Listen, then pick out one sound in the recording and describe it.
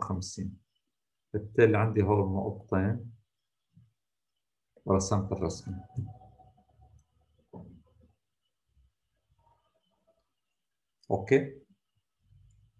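An elderly man speaks calmly in short phrases through a computer microphone, with pauses.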